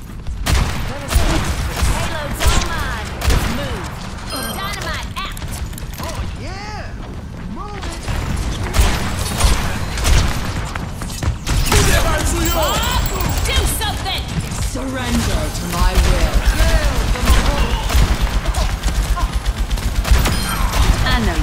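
A gun fires repeated loud shots.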